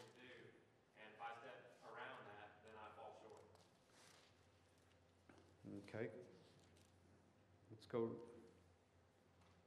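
A middle-aged man reads aloud calmly through a microphone in a room with slight echo.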